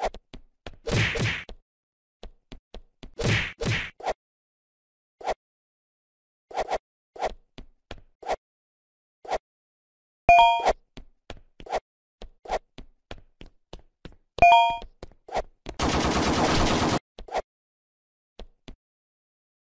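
Short game sound effects of jumps and hits pop in quick succession.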